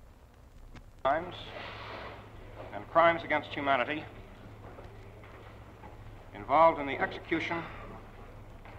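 A man speaks formally into a microphone, heard through an old, hissy recording.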